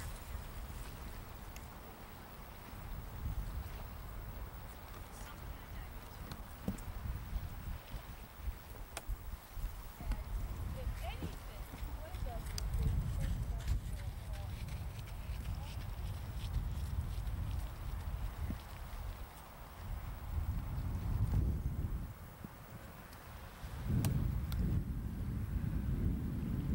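Wind gusts and rumbles loudly outdoors.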